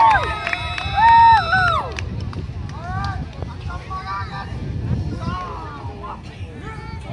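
A group of young girls sing and call out together outdoors.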